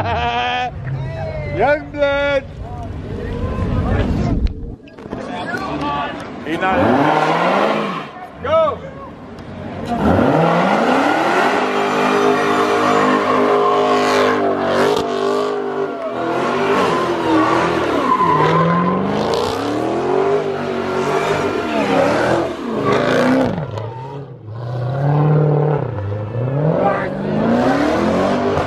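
An engine revs hard and roars.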